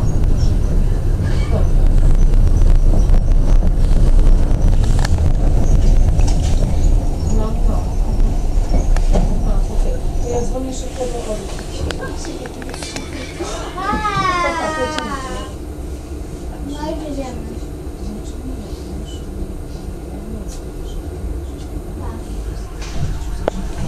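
A tram rumbles along the rails, heard from inside the cab.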